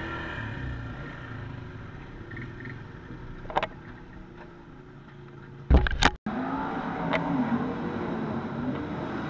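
A quad bike engine idles nearby.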